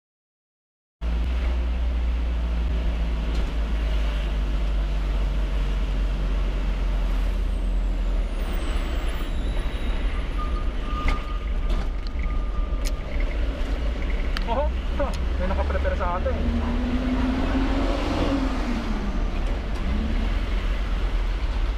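A vehicle engine rumbles steadily while driving along a road.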